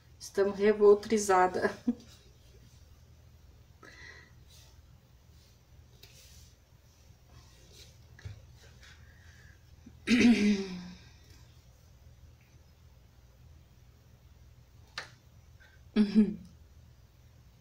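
A woman speaks calmly and close by, in short bursts.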